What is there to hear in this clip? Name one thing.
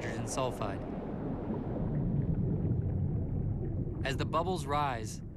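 Bubbles rise and gurgle underwater with a low, steady rumble.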